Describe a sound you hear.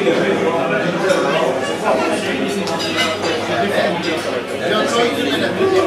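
A crowd of men talk and chatter close by.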